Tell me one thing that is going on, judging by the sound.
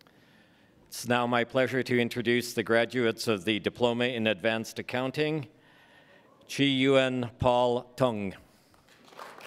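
A man announces names through a microphone.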